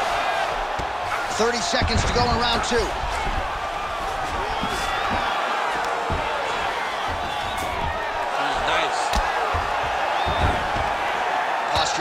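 A crowd roars steadily in a large arena.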